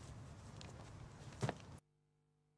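A body thuds heavily onto grass.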